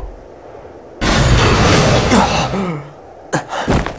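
A young man groans in pain.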